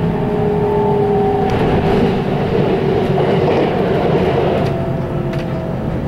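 A passing train rushes by close outside.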